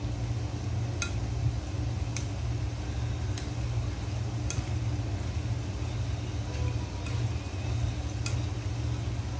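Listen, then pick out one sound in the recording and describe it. A metal skimmer clinks against a frying pan.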